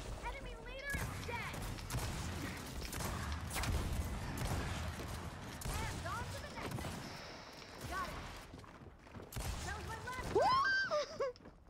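Guns fire in rapid bursts, with loud bangs.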